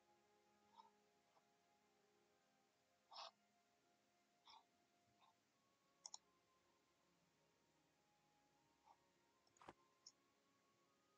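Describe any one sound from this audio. Short soft clicks sound as menus open and close.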